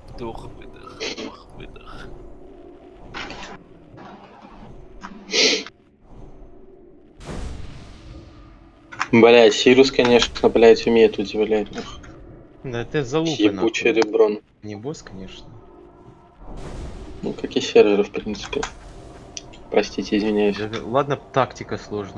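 Magic spells crackle and whoosh in a fight.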